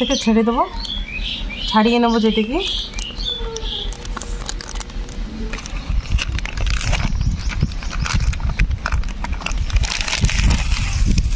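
A plastic sheet crinkles and rustles as it is peeled back.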